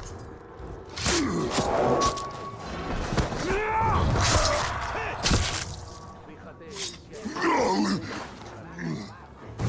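A large beast growls and snarls loudly.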